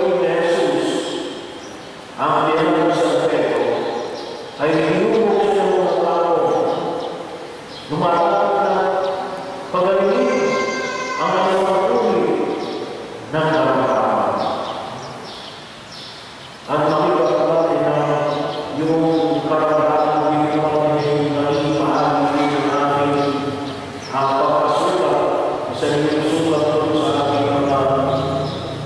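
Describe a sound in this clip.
A man sings slowly through a microphone in an echoing room.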